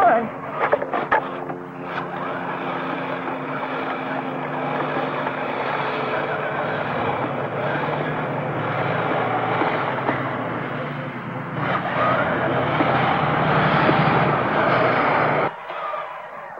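A small toy ride-on motor whirs steadily.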